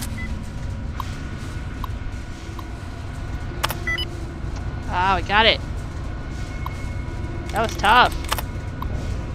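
A computer terminal clicks and beeps as keys are pressed.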